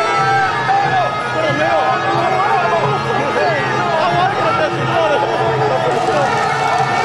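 A large crowd of marchers chants and shouts loudly outdoors.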